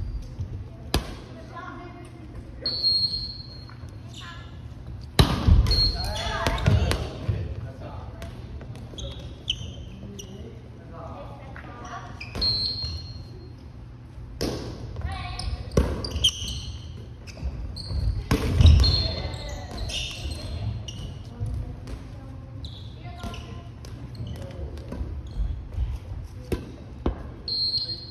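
A ball thuds off hands and the floor in a large echoing hall.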